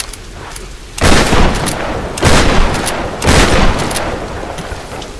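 A loud burst of smoke and fire whooshes.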